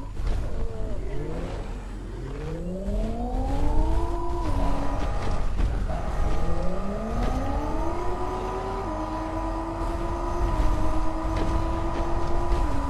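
A crane's motor whirs, rising in pitch as it moves.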